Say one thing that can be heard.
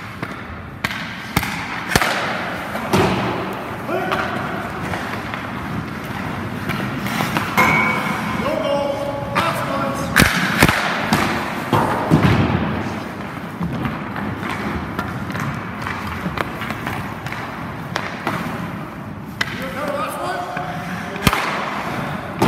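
A hockey goalie's skate blades scrape and hiss across the ice.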